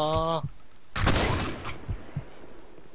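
A rifle fires a burst of loud gunshots.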